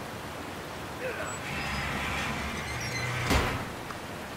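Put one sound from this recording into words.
A metal valve wheel squeaks and grinds as it is turned.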